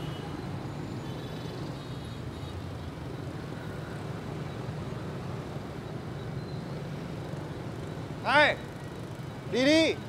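Street traffic rumbles steadily in the distance.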